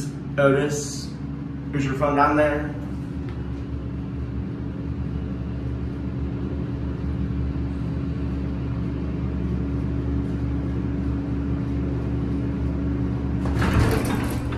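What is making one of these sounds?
A hydraulic elevator hums as its car travels.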